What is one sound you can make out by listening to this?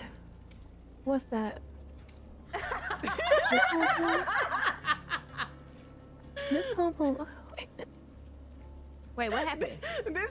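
A young woman laughs loudly and heartily close to a microphone.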